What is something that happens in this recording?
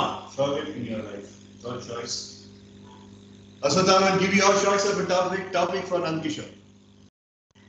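A man speaks with animation, heard through an online call.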